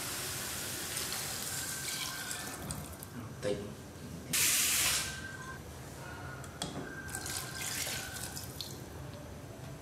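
A ceramic lid clinks against a metal pot.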